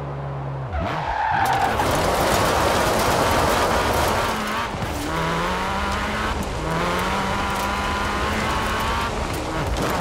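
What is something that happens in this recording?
Tyres skid and crunch over gravel.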